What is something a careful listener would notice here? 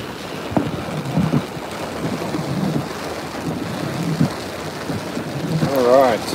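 Waves crash and surge nearby.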